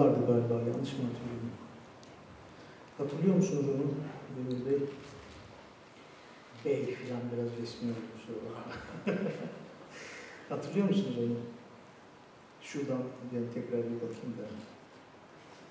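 A woman speaks to an audience through a microphone, in calm phrases with pauses.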